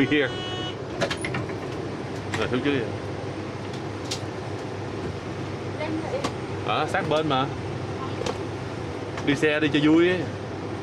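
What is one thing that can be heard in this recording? Luggage knocks and clatters inside the bus.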